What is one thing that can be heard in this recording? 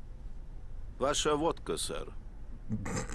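A man speaks calmly and politely, close by.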